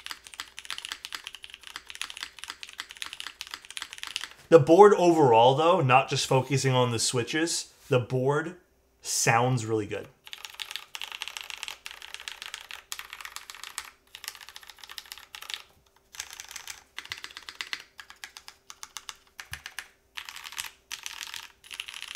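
Keys clack quickly on a mechanical keyboard.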